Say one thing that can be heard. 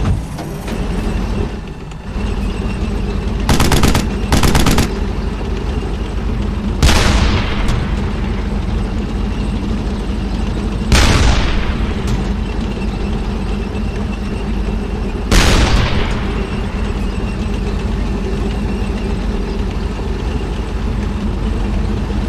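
A tank engine rumbles steadily as tracks roll along.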